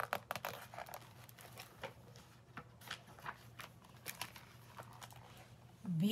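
Book pages rustle and turn close by.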